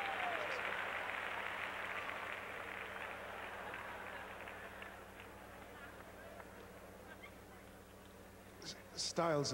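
An audience applauds and cheers in a large hall, slowly fading.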